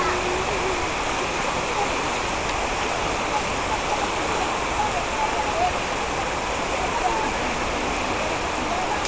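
Tall leafy plants rustle as people push through them.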